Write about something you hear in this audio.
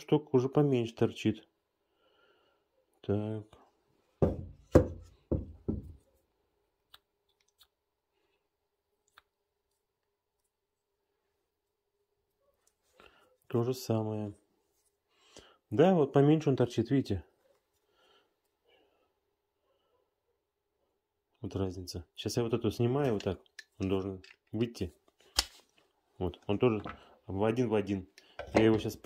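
Metal parts click and clink as they are handled.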